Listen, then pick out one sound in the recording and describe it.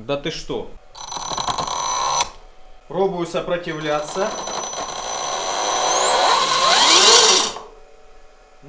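An electric bike motor whirs and rises in pitch as the rear wheel spins up.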